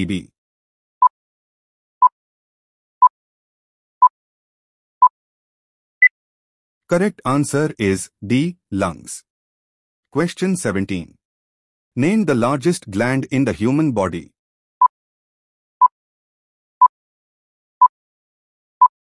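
A countdown timer beeps once each second.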